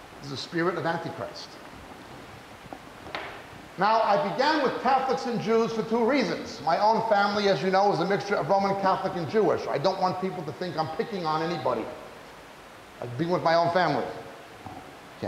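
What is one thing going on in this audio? A middle-aged man preaches with animation into a microphone.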